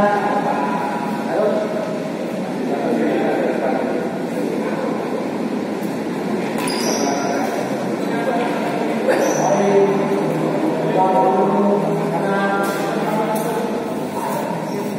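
Many voices chatter in a large echoing hall.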